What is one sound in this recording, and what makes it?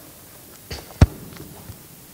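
A book thumps down onto a lectern.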